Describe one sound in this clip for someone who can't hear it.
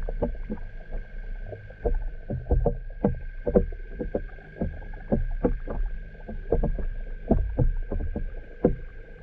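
Muffled water knocks and bubbles around an underwater microphone.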